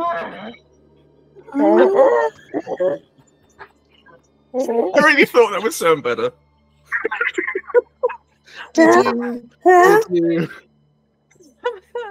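Several men and women laugh together on an online call.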